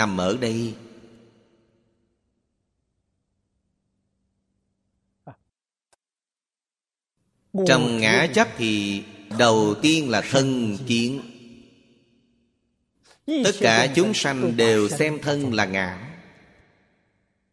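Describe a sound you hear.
An elderly man speaks calmly and slowly into a close microphone, with pauses.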